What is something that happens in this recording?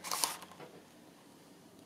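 A thin plastic sheet rustles and crinkles as it is laid down on paper.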